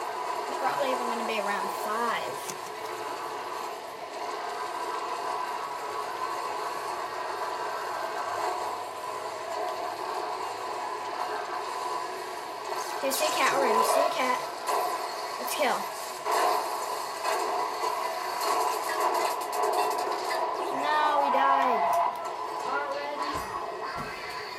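Video game blasts and zaps play from a television speaker.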